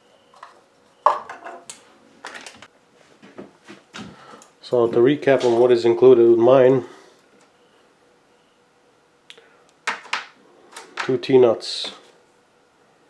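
Metal tools clink as they are set down on a table.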